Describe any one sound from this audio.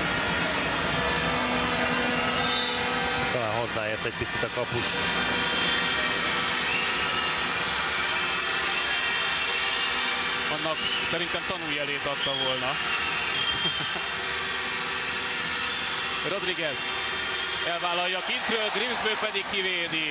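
A large crowd cheers and chants steadily in an echoing indoor arena.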